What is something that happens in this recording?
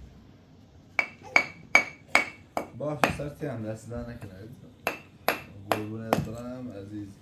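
Tea glasses clink against a metal tray.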